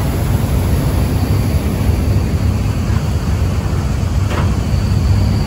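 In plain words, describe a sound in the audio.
Wind buffets loudly and steadily outdoors.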